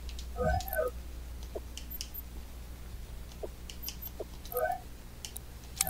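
Short electronic chimes sound as menu items are selected.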